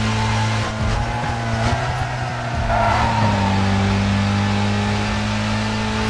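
Tyres screech on a sharp turn.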